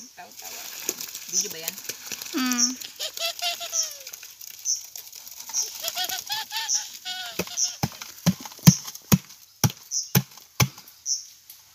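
Wet concrete splashes out of a bucket onto stones.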